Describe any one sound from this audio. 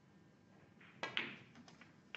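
A snooker cue tip strikes the cue ball.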